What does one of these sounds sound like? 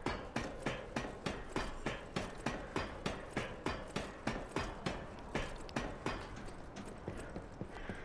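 Wooden ladder rungs knock in a quick, steady rhythm as someone climbs.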